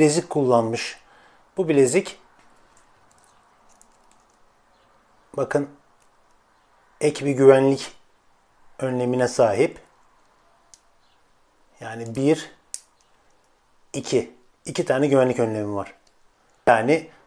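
A metal watch bracelet clicks softly as fingers work its clasp.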